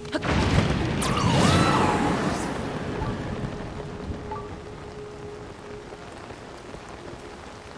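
Wind rushes past loudly, then slowly eases.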